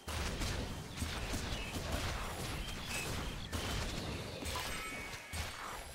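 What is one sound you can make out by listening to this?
Blows land in a fast fight.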